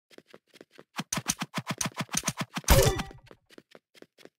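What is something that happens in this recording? A sword strikes with quick sharp hits.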